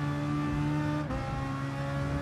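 A racing car engine briefly drops in pitch as it shifts gear.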